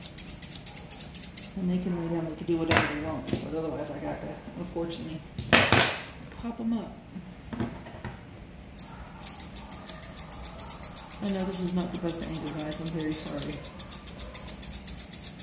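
Scissors snip rapidly through fur.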